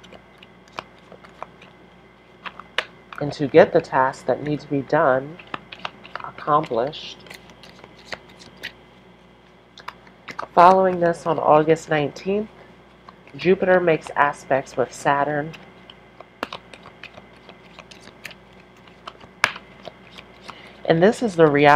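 Playing cards riffle and slap softly as they are shuffled.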